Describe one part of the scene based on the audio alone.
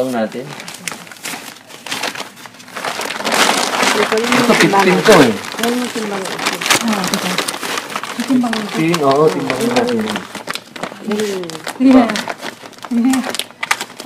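Plastic bags rustle and crinkle as hands dig through them.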